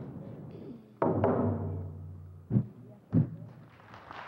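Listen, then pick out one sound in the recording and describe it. A hand drum booms with a few loud beats.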